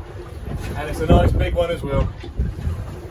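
A man speaks briefly, close by.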